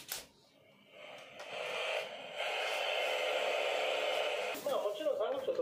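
A portable radio hisses with loud static.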